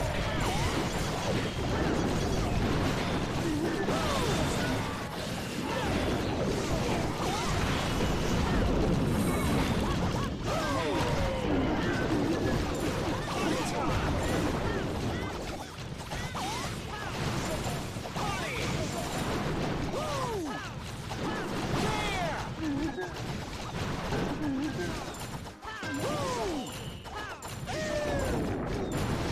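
Game explosions and blasts boom and crackle without pause.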